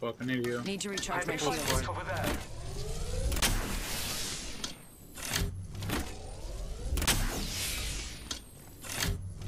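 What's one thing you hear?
A shield cell charges with a rising electronic whir.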